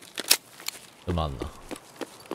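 A young man speaks briefly and quietly into a close microphone.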